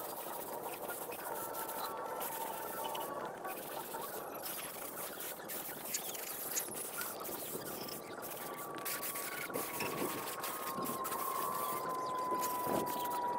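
Wind blows outdoors.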